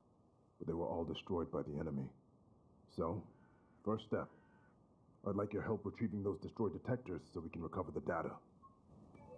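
A man speaks calmly and clearly.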